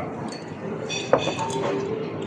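A glass clinks down on a table.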